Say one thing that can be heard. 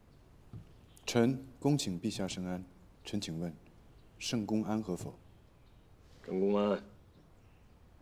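A man speaks calmly and slowly.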